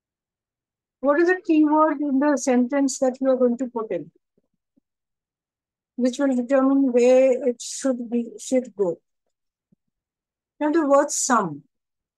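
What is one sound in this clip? A woman speaks calmly over a microphone, explaining in short phrases.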